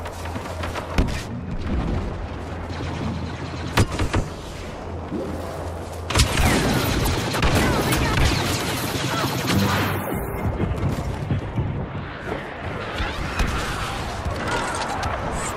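Laser guns fire in sharp bursts, with loud blasts close by.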